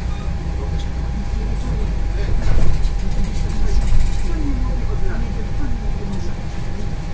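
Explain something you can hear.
A bus rattles and creaks as it rolls over the road.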